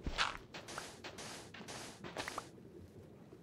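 Blocks crack and crumble as they are dug out in quick taps.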